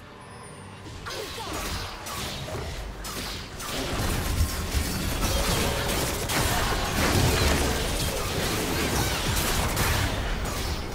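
Magic spells whoosh and blast in a chaotic battle.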